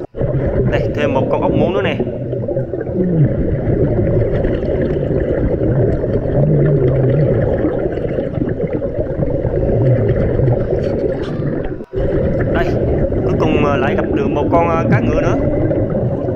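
Exhaled air bubbles gurgle and burble loudly close by underwater.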